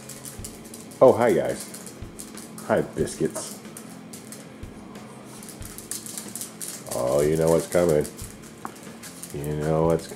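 A small dog whines and yelps in high, rising cries.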